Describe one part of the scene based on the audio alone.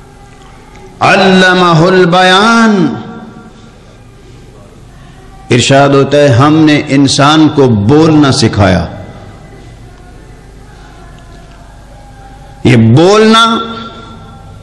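A middle-aged man chants loudly through a microphone in long melodic phrases, with pauses between them.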